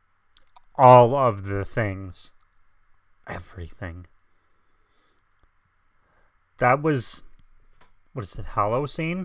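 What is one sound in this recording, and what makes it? A man talks with animation, close to a microphone, in short bursts.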